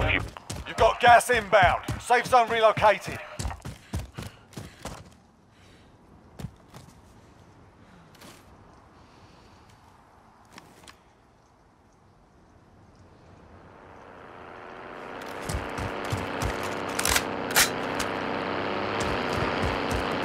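Footsteps crunch over snow and dry ground.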